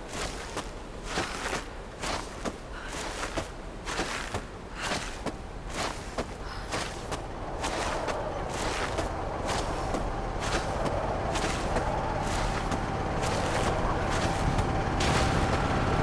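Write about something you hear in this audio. Hands slide and rub along a rope in quick regular strokes.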